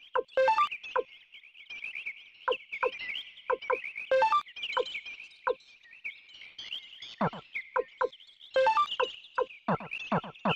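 Short electronic menu blips sound again and again.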